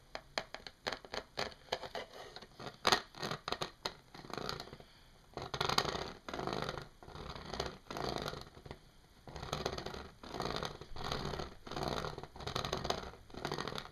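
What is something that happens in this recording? Fingers rub and scrape across a plastic mesh in bursts.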